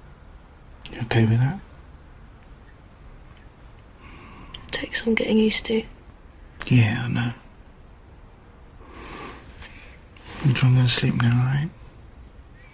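A man speaks softly and close by, in short phrases.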